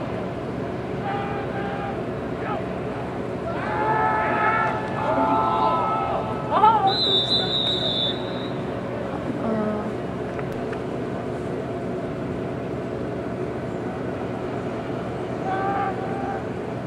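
A crowd of people shout in the distance outdoors.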